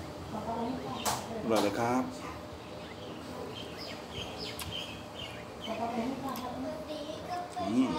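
A man slurps noodles loudly, close by.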